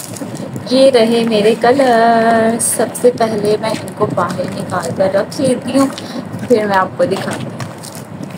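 A plastic bag rustles and crinkles as a hand rummages inside.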